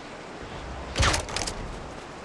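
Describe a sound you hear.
A pistol shot cracks loudly.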